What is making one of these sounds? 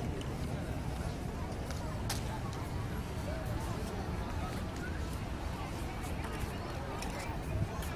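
A crowd murmurs and chatters outdoors at a distance.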